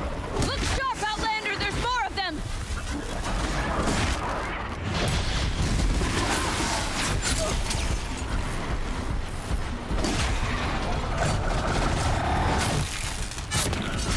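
Sparks crackle and explode around the machines.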